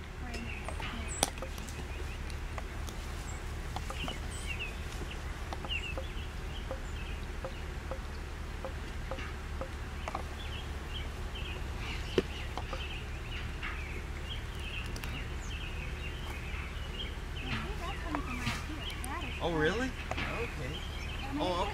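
Bees buzz around an open hive.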